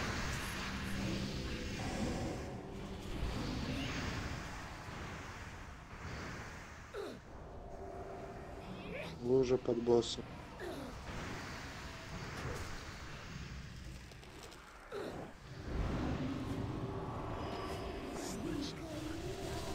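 Magic spells crackle and boom in a fantasy battle.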